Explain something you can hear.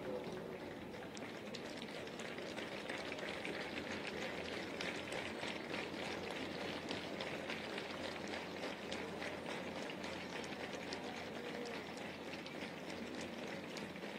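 A large crowd claps rhythmically outdoors.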